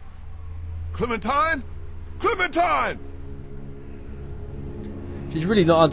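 A man speaks in a low, worried voice, close by.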